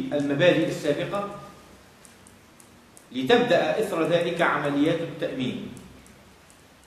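A man speaks calmly into a nearby microphone, in a room with some echo.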